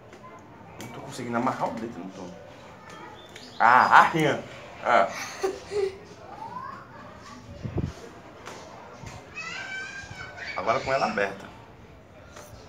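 A young boy talks and laughs close by.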